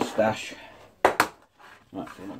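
A cardboard box is set down on a table with a light knock.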